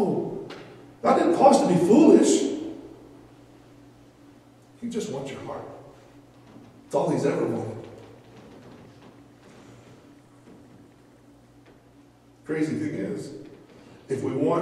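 A man speaks through a microphone, preaching with animation in an echoing hall.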